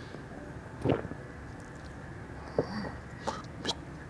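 A glass is set down on a table with a light knock.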